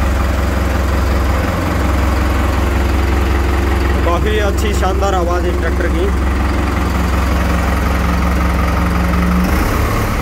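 A tractor engine idles with a steady, low rumble close by.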